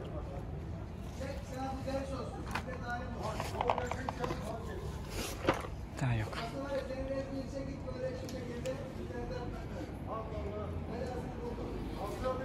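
Cats crunch on dry food close by.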